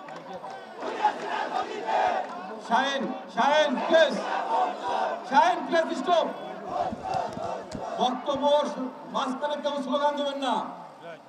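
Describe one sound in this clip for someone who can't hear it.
A large crowd chants and shouts together.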